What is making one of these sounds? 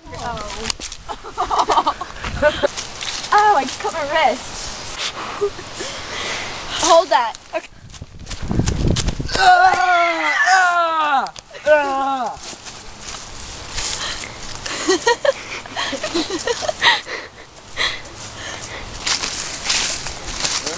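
Footsteps crunch on dry leaves and ground outdoors.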